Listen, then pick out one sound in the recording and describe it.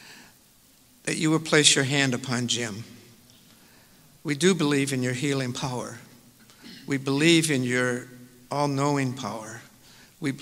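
An elderly man reads out calmly into a microphone, heard through loudspeakers in a large room.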